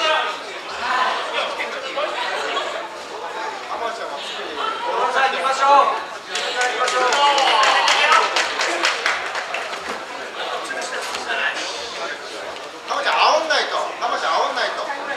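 Bare feet shuffle and thud on a mat.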